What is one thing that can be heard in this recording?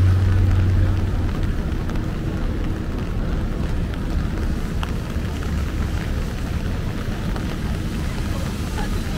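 City traffic rumbles steadily outdoors.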